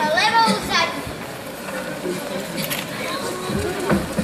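A young girl sings through a microphone on a stage.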